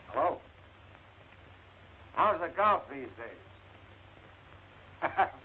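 A man speaks into a telephone in short, lively bursts, close by.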